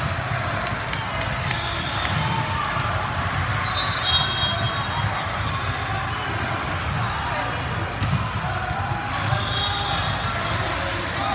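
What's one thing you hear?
A volleyball thumps as it is hit.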